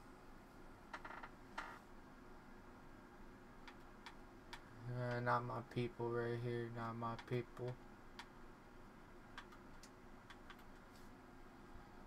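Short game menu clicks sound now and then.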